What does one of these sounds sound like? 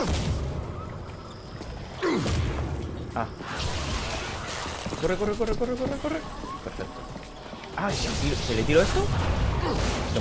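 Gunfire and explosions boom from a game.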